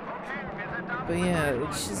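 A jet roars past overhead.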